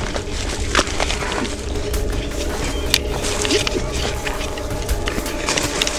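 Leaves rustle and brush close by.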